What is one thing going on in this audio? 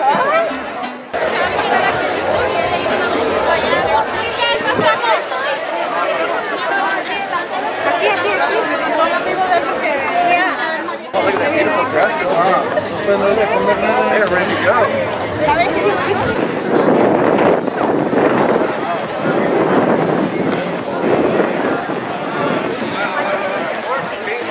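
A crowd of men, women and children chatters all around outdoors.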